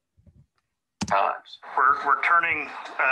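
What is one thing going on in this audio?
A man speaks calmly, heard through a recording.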